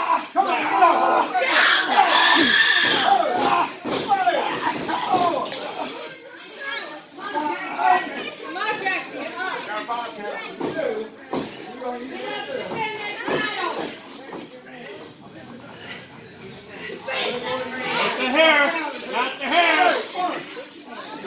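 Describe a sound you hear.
Men shout and yell in an echoing hall.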